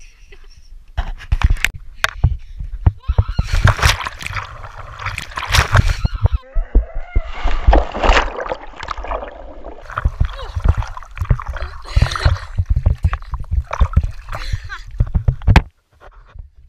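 Water splashes loudly as a boy plunges in and thrashes about.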